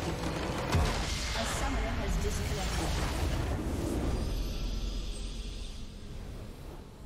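A crystal structure shatters in a loud, rumbling blast that fades away.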